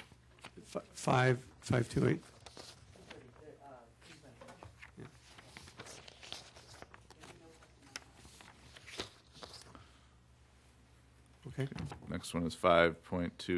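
A man speaks briefly into a microphone in a meeting room echo.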